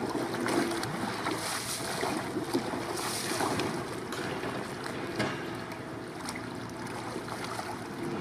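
Water sloshes against a rocking kayak.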